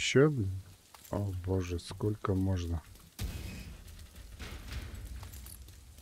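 Footsteps crunch over rubble.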